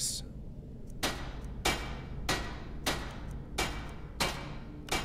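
A hammer strikes metal in a steady rhythm, each blow ringing briefly.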